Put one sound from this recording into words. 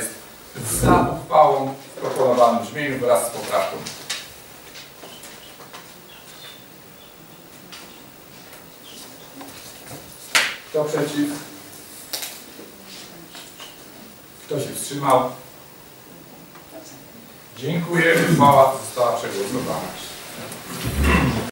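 A man speaks nearby, with pauses.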